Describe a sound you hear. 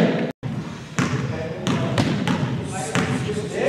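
A basketball bounces on the floor in a large echoing hall.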